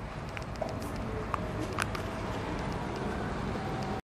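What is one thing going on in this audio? Traffic rumbles past on a nearby street outdoors.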